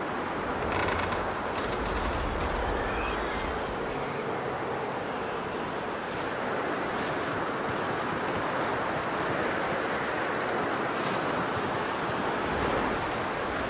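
Boots crunch through deep snow.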